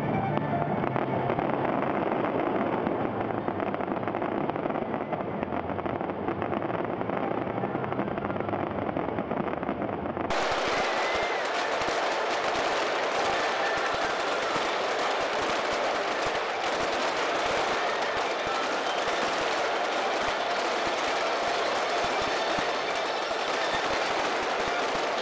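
Fireworks burst with loud bangs.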